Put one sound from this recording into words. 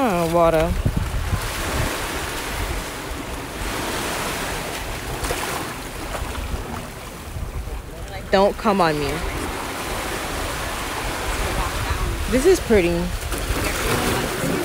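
Small waves wash and break on a beach.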